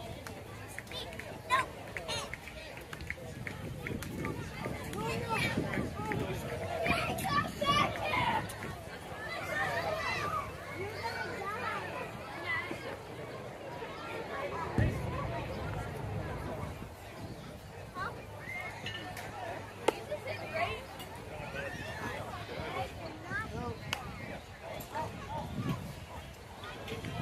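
Men and children talk and call out nearby outdoors.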